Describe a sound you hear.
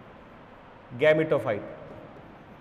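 A man speaks a few words briefly into a microphone.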